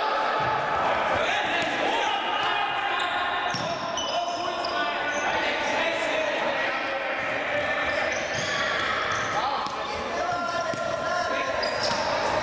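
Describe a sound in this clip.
A ball thumps off a foot as players pass it.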